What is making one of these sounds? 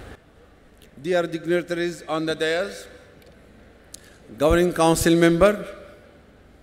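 An elderly man speaks calmly through a microphone over loudspeakers in a large hall.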